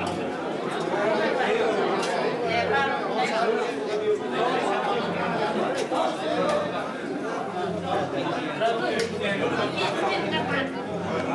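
A crowd of men and women chatter nearby in an echoing indoor room.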